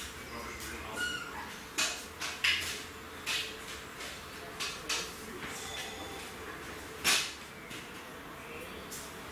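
A man puffs on a pipe with short sucking sounds.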